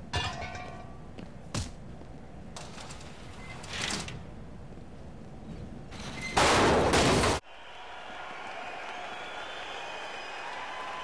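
Heavy blows land with dull thuds.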